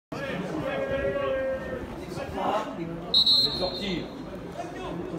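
Men shout and call out nearby, outdoors.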